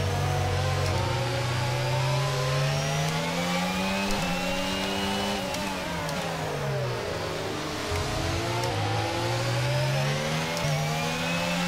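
Gear shifts click sharply now and then.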